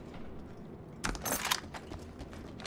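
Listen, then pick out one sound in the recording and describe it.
A weapon clatters and clicks as it is put away.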